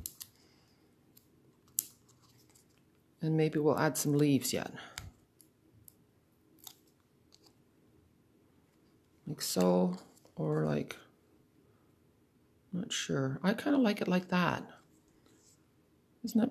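Paper rustles and taps softly as hands handle it.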